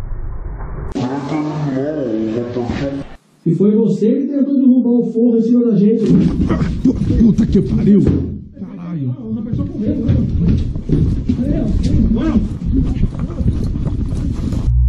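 A man talks in a low voice close by.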